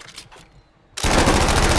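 Gunfire crackles loudly.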